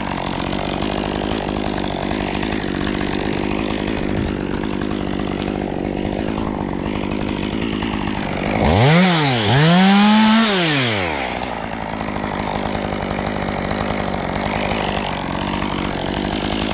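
A chainsaw engine idles steadily close by.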